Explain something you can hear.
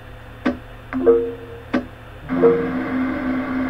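Short electronic menu beeps sound a few times.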